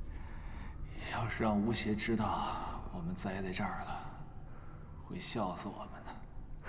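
A man speaks weakly, close by.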